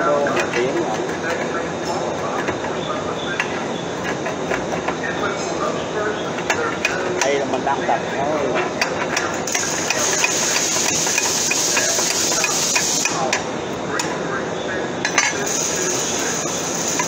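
Metal pieces clink and clatter against one another.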